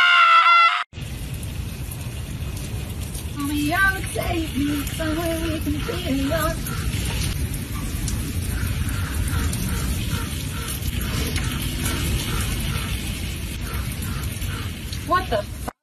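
Water from a shower pours and splashes steadily.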